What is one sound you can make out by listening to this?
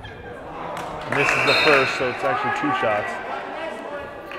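Spectators on the sidelines cheer loudly.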